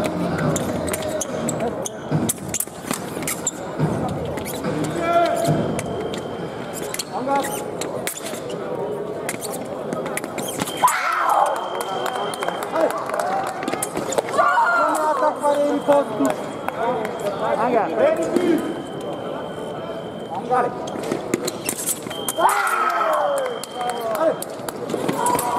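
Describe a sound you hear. Sabre blades clash and click sharply.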